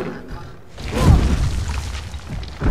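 A large creature lands with a heavy thud.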